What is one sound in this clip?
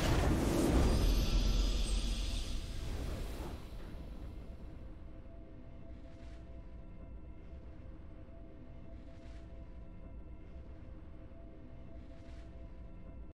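A triumphant musical chord swells and then holds softly.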